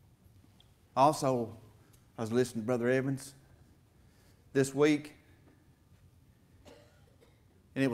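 A middle-aged man speaks with animation through a microphone in a large echoing hall, pausing between phrases.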